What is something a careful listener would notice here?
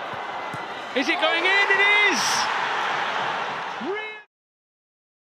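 A stadium crowd roars in a loud cheer.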